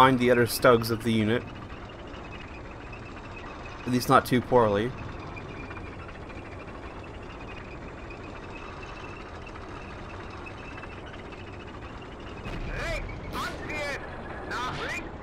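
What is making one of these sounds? A tank engine rumbles steadily.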